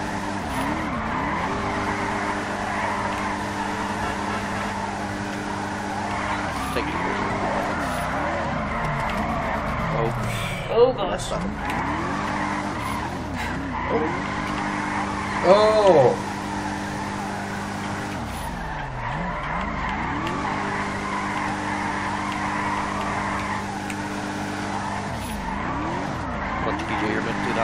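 A car engine revs up and down throughout.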